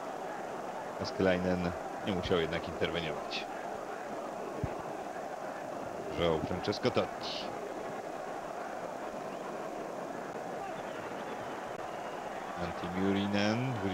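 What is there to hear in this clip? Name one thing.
A large stadium crowd murmurs and cheers steadily outdoors.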